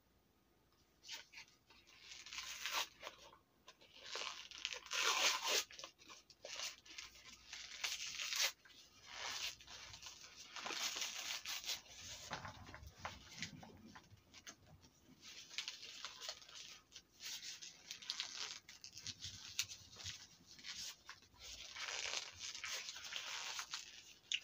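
Hard crumbly pieces crunch and crumble as a woman crushes them in her hands.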